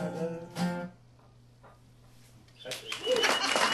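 An acoustic guitar strums a final chord that rings out.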